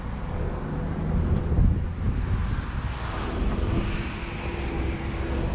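Wind rumbles past outdoors.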